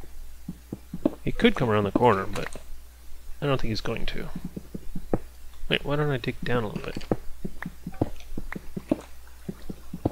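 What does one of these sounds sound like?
A pickaxe chips at stone blocks.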